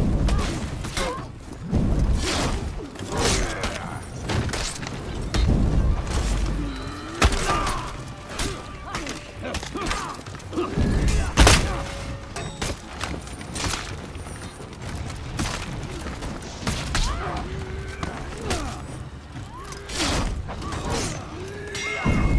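Swords clash and strike sharply again and again.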